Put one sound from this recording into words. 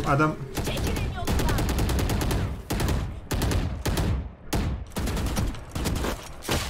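Rapid gunshots fire in short bursts.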